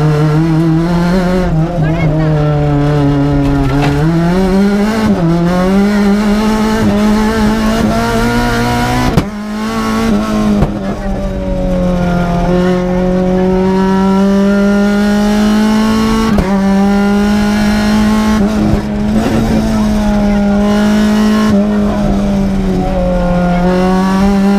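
Gravel and tyres rumble under a racing car.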